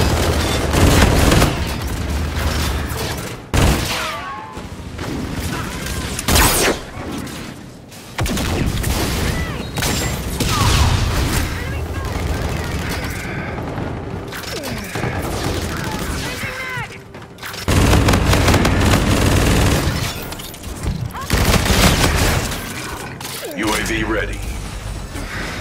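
Automatic gunfire rattles in loud rapid bursts.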